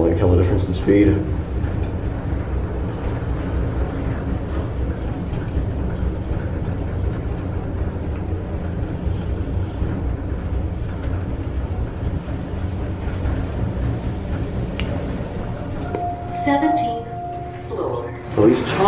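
An elevator hums and rumbles steadily as it rises.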